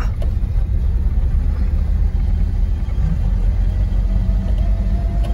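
A car engine rumbles steadily from inside the car as it drives along.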